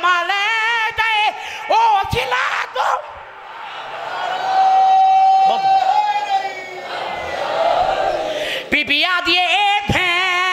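A young man chants loudly and with feeling through a microphone and loudspeakers.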